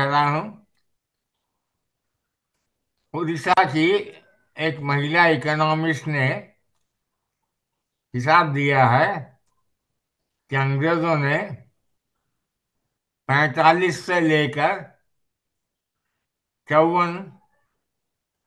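An elderly man speaks slowly and calmly in short phrases with pauses, close to a microphone, as if over an online call.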